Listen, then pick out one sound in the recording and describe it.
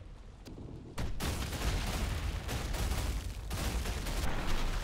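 A creature bursts apart with a wet splatter.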